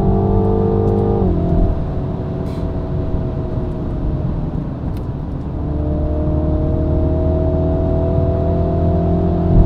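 Wind and road noise rush past an open roof.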